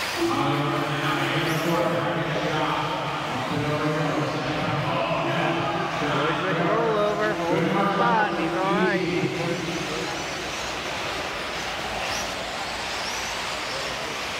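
Small electric model cars whine and buzz as they race around a dirt track.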